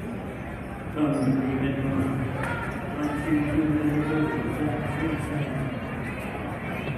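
A crowd of spectators chants and cheers loudly.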